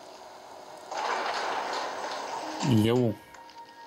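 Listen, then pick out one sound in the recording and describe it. Heavy elevator doors slide open.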